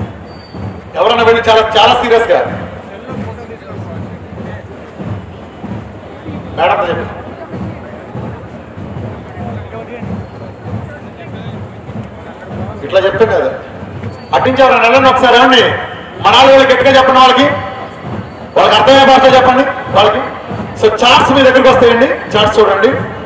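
A man sings loudly into a microphone, heard through loudspeakers, in short bursts with pauses.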